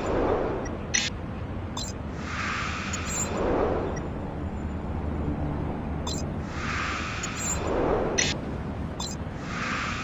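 Soft clicks sound as menu windows switch.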